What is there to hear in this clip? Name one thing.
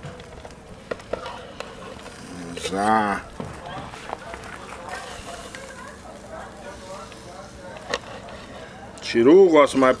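A knife slices through cooked meat on a wooden board.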